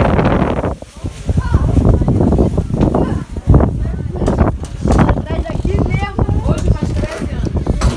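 Women and men talk nearby.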